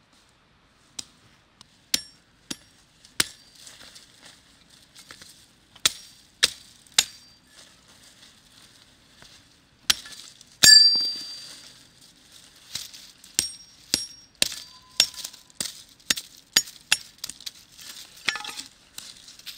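A hatchet chops sharply at wooden sticks against stone.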